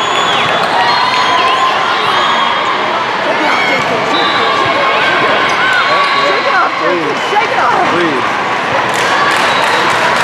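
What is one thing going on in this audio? A crowd of voices chatters and calls out in a large echoing hall.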